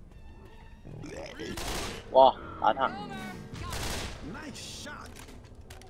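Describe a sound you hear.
Rapid gunfire rings out in bursts.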